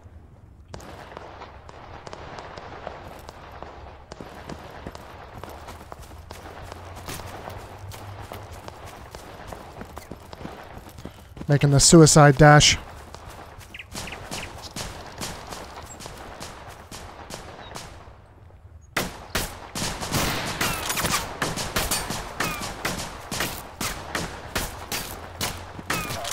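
Footsteps crunch steadily over dry ground and wooden boards.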